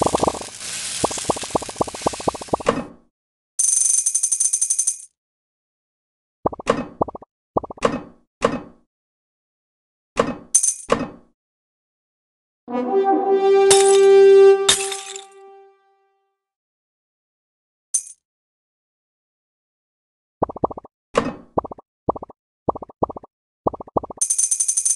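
Quick bright popping game sounds come in bursts as balls are picked up.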